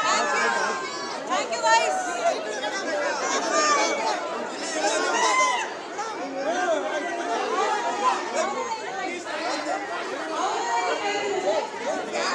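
A large crowd of young men cheers and shouts excitedly close by.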